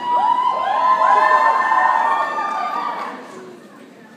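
An audience screams and cheers loudly.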